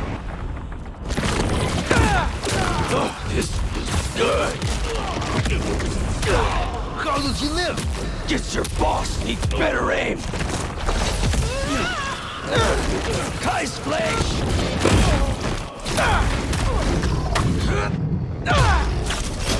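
Heavy blows land in a fight, with thuds and impacts.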